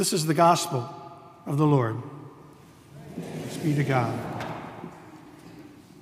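An elderly man sings through a microphone in a large echoing hall.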